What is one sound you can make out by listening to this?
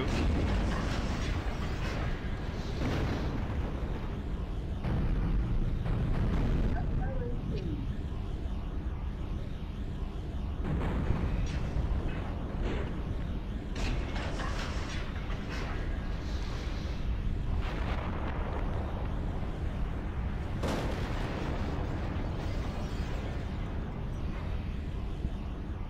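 Explosions boom and rumble in a game.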